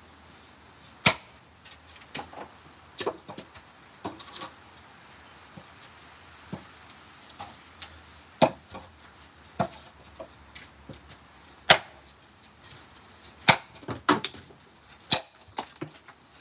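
An axe strikes a wooden log with sharp, heavy thuds.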